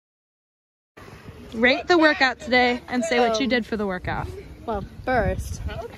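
A young woman talks cheerfully outdoors.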